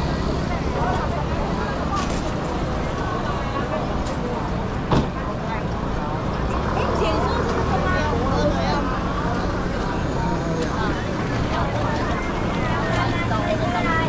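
Footsteps scuff on pavement nearby.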